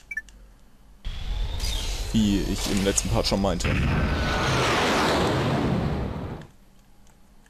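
A rocket engine roars loudly as a spaceship lifts off.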